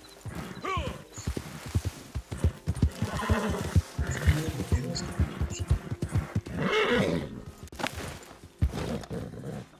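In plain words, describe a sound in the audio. A horse's hooves thud on the ground at a gallop.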